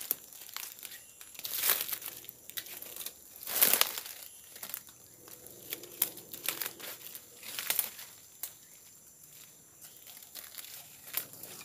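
A small bird chirps sharply among the trees, now and then.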